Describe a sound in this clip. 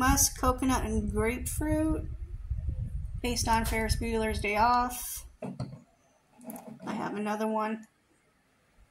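A woman talks calmly and close by, with pauses.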